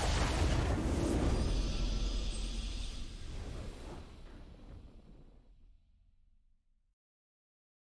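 A triumphant victory fanfare swells and then fades away.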